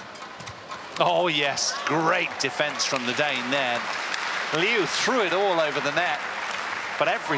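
A large crowd cheers and applauds loudly in an echoing hall.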